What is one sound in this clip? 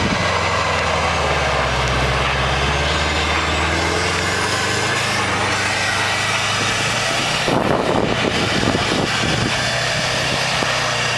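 A car engine revs loudly and steadily.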